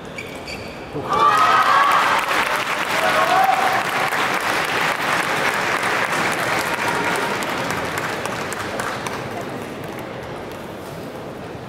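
A large crowd cheers and applauds in an echoing arena.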